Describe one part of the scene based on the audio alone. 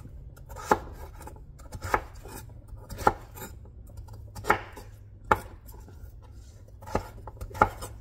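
A knife chops on a cutting board in sharp, spaced knocks.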